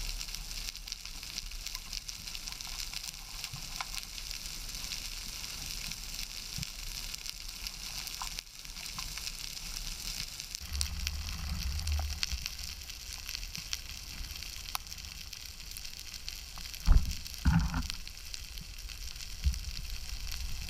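Faint clicks and crackles sound steadily underwater.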